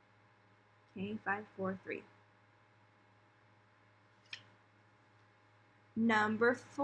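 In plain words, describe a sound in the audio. A woman speaks calmly and clearly close by, in short phrases.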